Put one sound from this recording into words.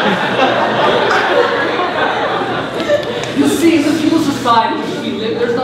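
Young people talk with animation in a large echoing hall.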